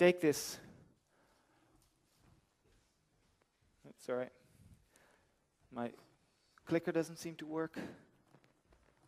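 A man speaks in short bursts with long pauses.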